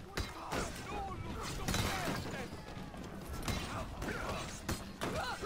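A crowd of men shouts and grunts.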